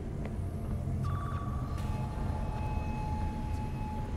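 An electronic device chirps with a steady tone.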